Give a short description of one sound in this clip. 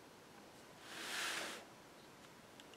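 Paper rustles softly under hands.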